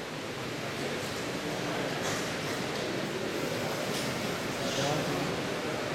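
Footsteps knock on a wooden stage in a large echoing hall.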